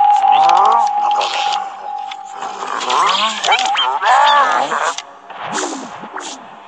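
Cartoonish game sound effects chirp, whoosh and chime throughout.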